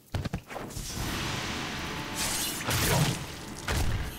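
Heavy blows thud and smack in a fight.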